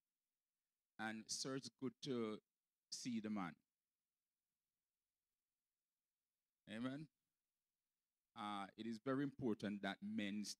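A man speaks through a microphone in short phrases with pauses.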